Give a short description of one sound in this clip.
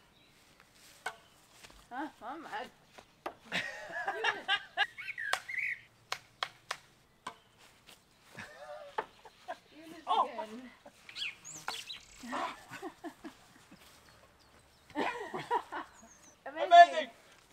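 A racket sharply strikes a shuttlecock.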